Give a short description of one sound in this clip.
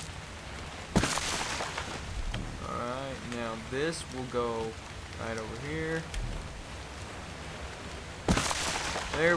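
A wooden club strikes a straw door with a dull crunch.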